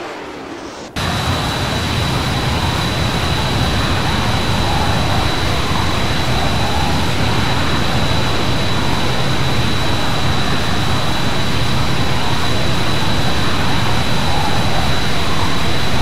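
A jet engine roars loudly and steadily as a low-flying jet passes.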